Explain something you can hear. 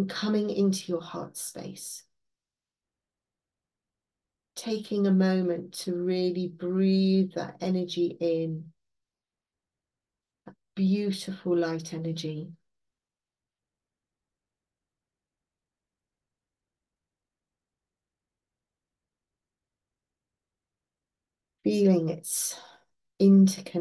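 An older woman speaks calmly through a microphone, with long pauses.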